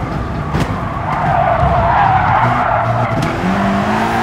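Tyres screech through a corner.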